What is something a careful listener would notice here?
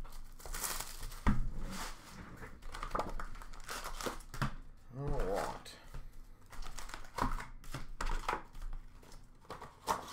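A plastic wrapper crinkles as it is torn and handled.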